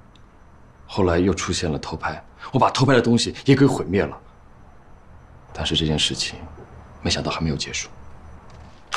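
A young man speaks quietly and seriously, close by.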